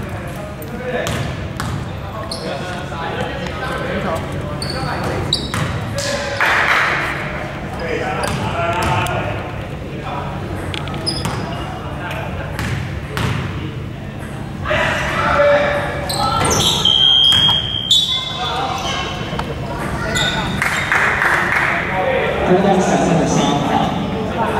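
Young men call out and talk across the court.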